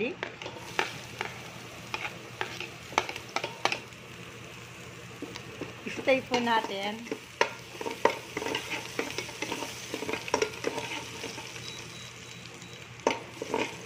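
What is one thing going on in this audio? A metal spoon scrapes and clinks against a steel pan.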